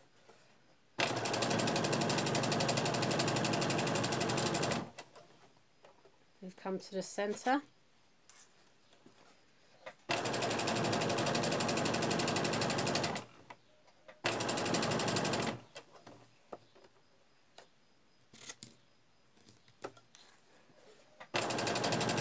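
A sewing machine whirs in quick bursts, stitching at a steady pace.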